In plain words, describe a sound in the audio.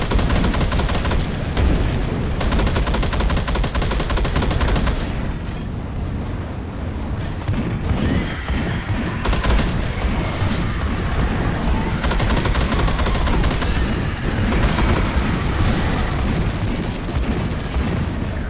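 A heavy gun fires in rapid bursts with a loud rattle.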